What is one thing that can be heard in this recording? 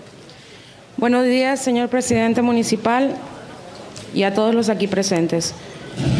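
A young woman speaks into a microphone in a high, clear voice.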